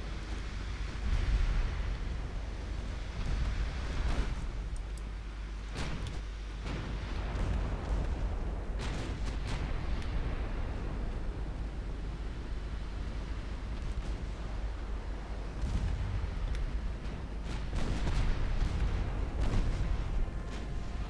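Heavy naval guns boom and shells burst in deep rumbling blasts.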